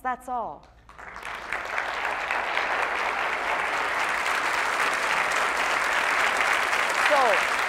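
A large audience applauds loudly in an echoing hall.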